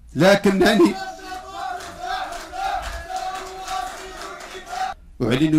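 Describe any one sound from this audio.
A man speaks forcefully into a microphone, his voice echoing through a loudspeaker in a large hall.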